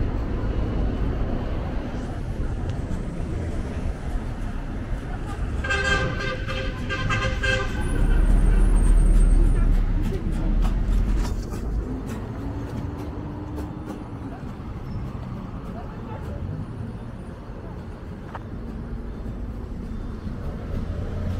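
Traffic rumbles steadily along a nearby street outdoors.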